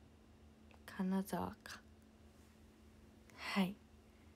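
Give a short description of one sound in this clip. A young woman speaks in short, high-pitched bursts close to a microphone.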